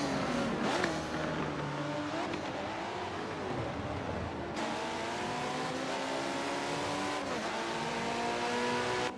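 A sports car engine roars at high revs and shifts gears as it speeds away.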